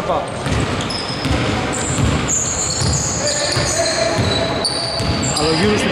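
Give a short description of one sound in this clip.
A basketball bounces with dull thuds on a wooden floor.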